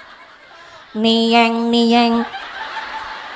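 A young woman sings a long, held melodic line through a microphone.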